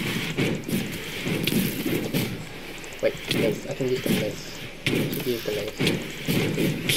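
A heavy mace strikes bony creatures with sharp thuds.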